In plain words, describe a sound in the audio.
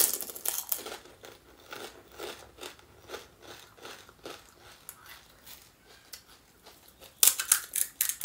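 Someone chews wet food with soft, squelchy mouth sounds, close up.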